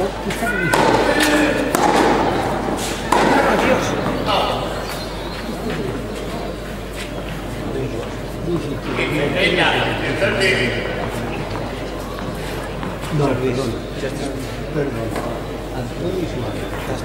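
A tennis ball is struck with a racket, back and forth in a rally.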